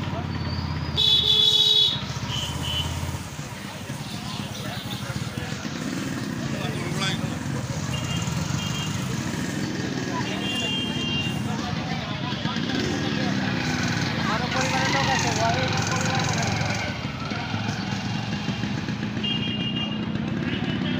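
Horns beep in short bursts nearby.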